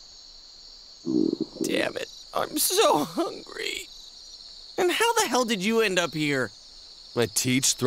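A young man speaks wearily, close up.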